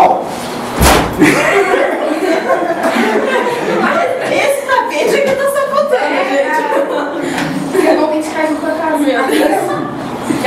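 A young girl laughs out loud.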